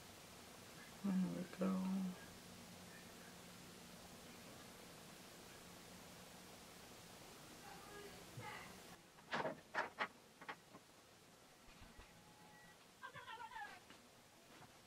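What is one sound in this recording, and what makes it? A young woman speaks calmly and briefly, close by.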